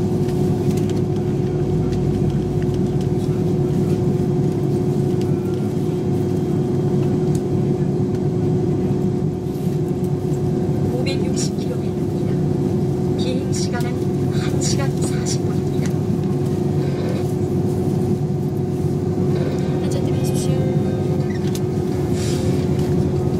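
Jet engines hum steadily from inside an airliner cabin as it taxis.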